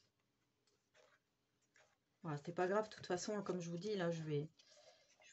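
Paper card rustles softly as it is slid across a table.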